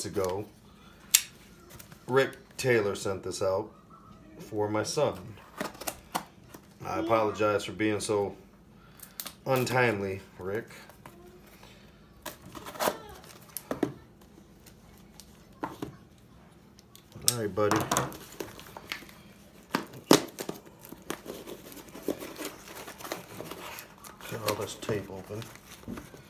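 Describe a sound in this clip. Cardboard packaging rustles and crinkles in hands.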